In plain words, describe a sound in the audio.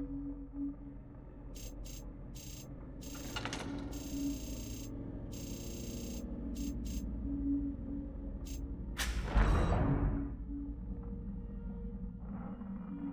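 A low, eerie ambient drone plays steadily.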